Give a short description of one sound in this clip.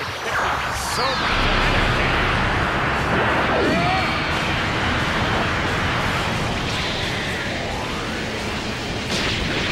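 A large energy blast roars and rumbles.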